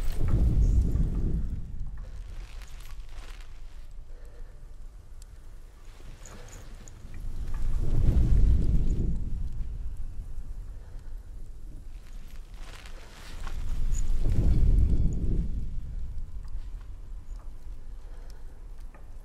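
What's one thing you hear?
Embers crackle and hiss on the ground.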